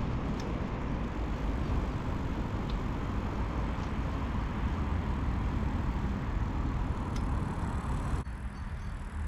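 Bicycle tyres roll over a gravel path.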